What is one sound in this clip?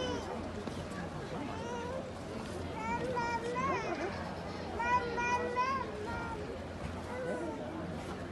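Horse hooves thud softly on sand.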